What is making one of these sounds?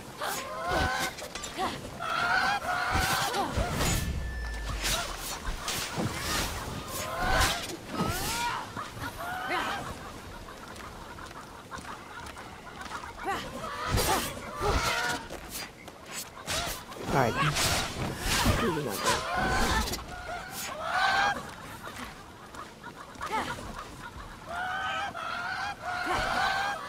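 Large birds squawk shrilly, again and again.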